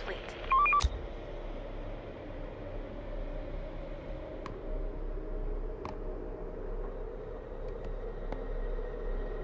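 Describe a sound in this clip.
Short electronic interface blips and clicks sound now and then.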